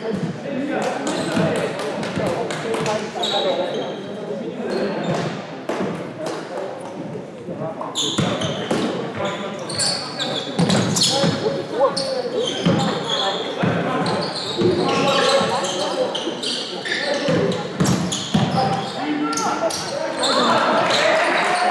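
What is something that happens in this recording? A crowd of young people chatters and calls out in the echoing hall.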